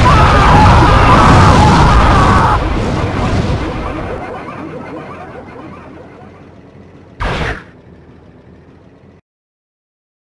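Flames roar loudly and slowly fade away.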